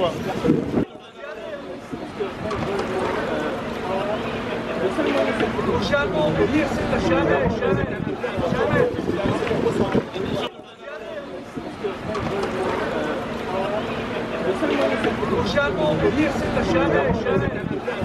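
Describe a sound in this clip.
An elderly man talks calmly with a small group outdoors.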